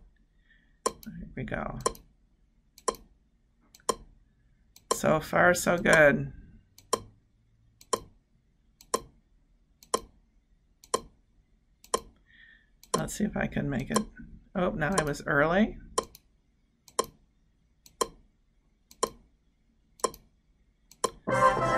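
A sharp click ticks steadily, once every second.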